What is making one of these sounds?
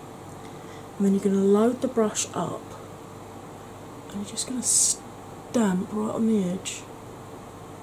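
A woman speaks softly close to the microphone.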